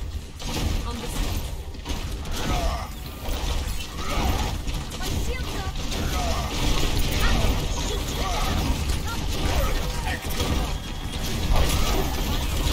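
Blasts and impacts crackle and boom.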